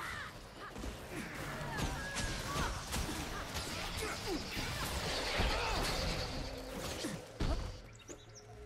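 Sharp hits and magical bursts ring out rapidly in a game battle.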